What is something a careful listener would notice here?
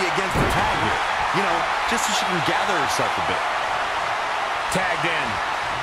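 Heavy thuds of bodies hitting a wrestling mat ring out.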